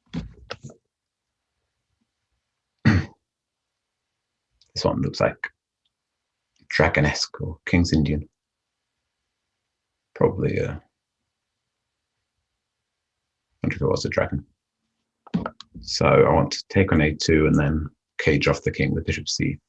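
A man speaks calmly and thoughtfully into a close microphone, with long pauses.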